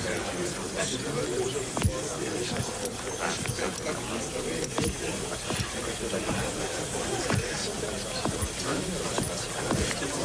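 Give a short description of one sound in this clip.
A crowd of men murmurs and talks in a room.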